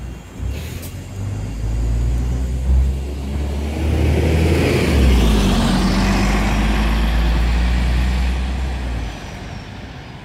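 A bus engine rumbles and revs as the bus pulls away and fades into the distance.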